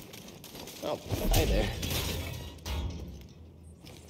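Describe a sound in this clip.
A heavy thud sounds as someone lands from a jump.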